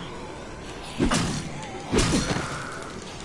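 A bat strikes a body with heavy thuds.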